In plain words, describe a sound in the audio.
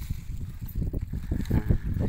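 Seeds pour and patter into a plastic bag.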